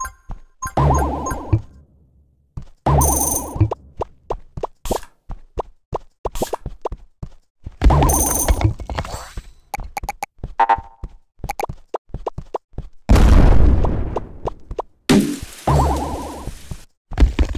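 Short electronic game sound effects pop and chime in quick succession.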